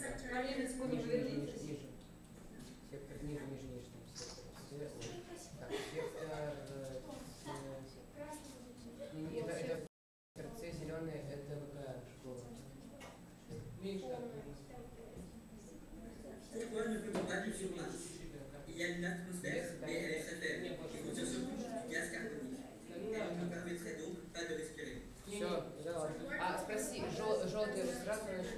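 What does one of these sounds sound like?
Children talk and chatter nearby in a room.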